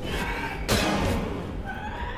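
Blades slash and strike in a brief fight.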